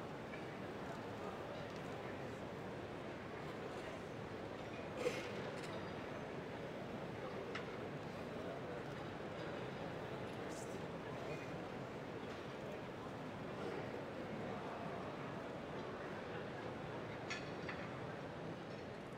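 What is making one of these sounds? An orchestra plays softly in a large echoing hall.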